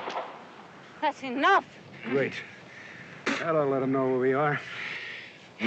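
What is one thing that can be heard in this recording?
Two men grunt and groan as they grapple.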